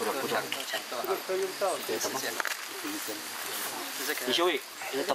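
An elderly man speaks calmly nearby, outdoors.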